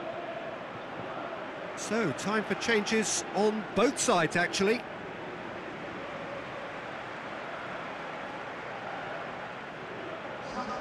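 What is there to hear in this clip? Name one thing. A large crowd murmurs and cheers steadily in a stadium.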